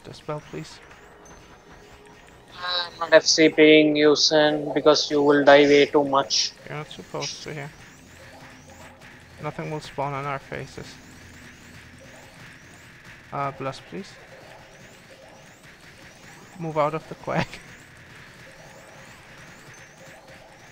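Magic spell effects chime and crackle in a video game.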